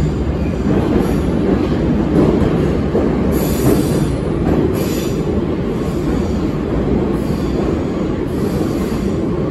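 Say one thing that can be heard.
A metro train rumbles and rattles loudly along the track.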